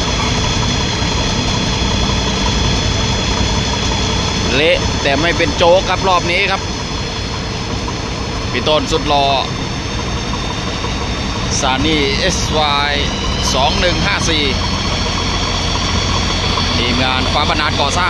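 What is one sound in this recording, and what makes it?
Mud and water slosh as an excavator bucket scoops and dumps.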